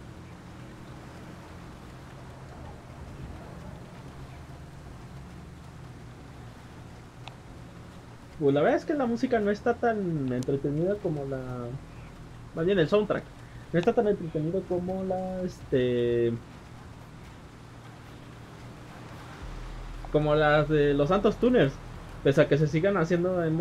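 Tyres hiss on a snowy road.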